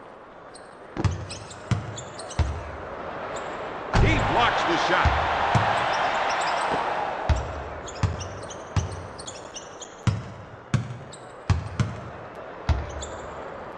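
A basketball bounces with dull thumps on a court.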